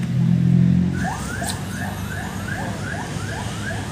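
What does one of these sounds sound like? A fishing reel clicks rapidly as its line is wound in.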